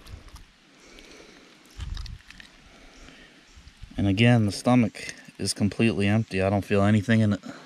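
Fingers pull wet fish skin and flesh with soft squelching sounds.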